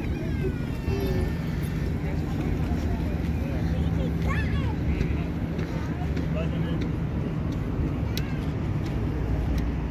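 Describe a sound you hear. Adult men talk casually in the background outdoors.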